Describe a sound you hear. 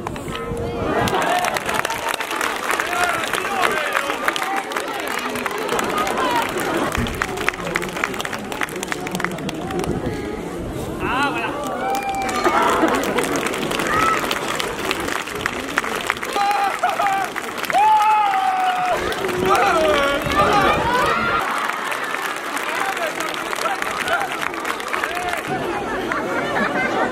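A large outdoor crowd claps and applauds.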